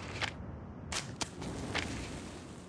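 A match strikes and flares into flame.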